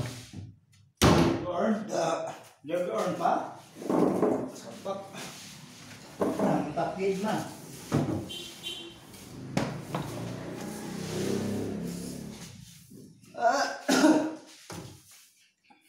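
A man talks close by, calmly.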